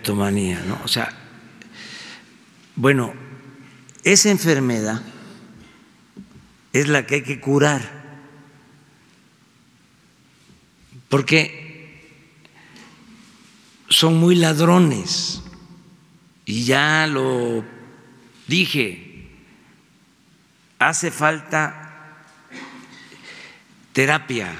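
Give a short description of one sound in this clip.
An elderly man speaks calmly and deliberately into a microphone, with pauses between phrases, in a room with a slight echo.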